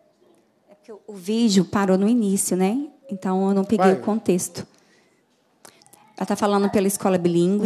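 A man speaks loudly through a microphone in a large room.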